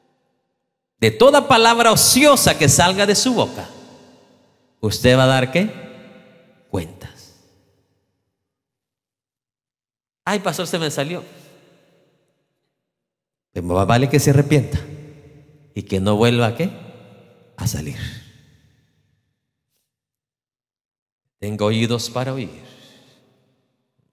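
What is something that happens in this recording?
A man speaks with emotion through a microphone in a large echoing hall, pausing often.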